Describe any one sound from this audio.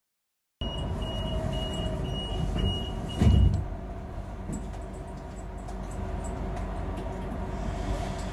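A windscreen wiper thumps across the glass.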